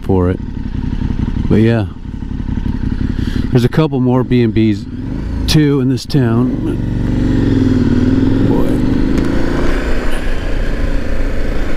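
A motorcycle engine idles and then revs as the motorcycle pulls away.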